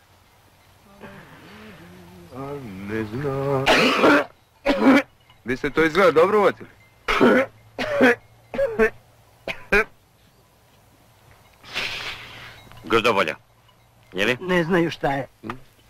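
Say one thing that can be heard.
A man coughs hoarsely.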